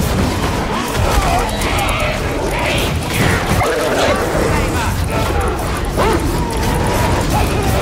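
Flames roar and hiss.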